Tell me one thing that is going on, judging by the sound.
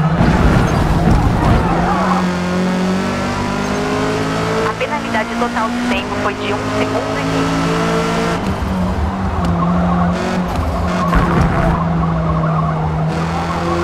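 A racing car engine roars steadily, rising in pitch as it shifts through the gears.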